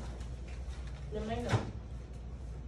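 A man speaks briefly in a room.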